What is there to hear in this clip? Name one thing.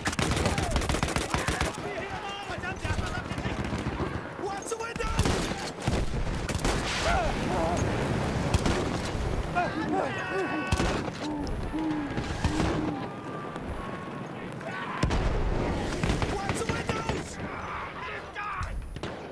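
Gunshots crack rapidly and loudly.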